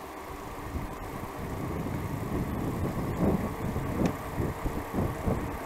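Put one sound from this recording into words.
Bicycle tyres roll on a paved road.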